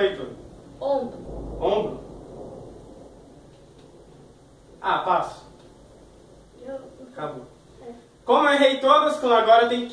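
A boy speaks with animation, close by.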